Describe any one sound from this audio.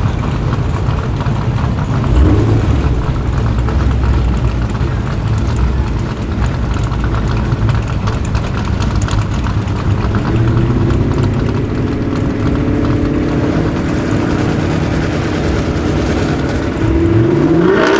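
A car engine idles with a deep, loud rumble.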